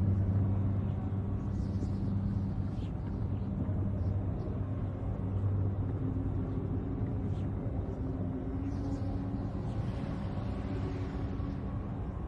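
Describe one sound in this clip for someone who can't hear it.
Spacecraft engines hum and roar steadily.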